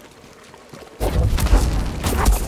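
A creature lets out a sudden loud roar.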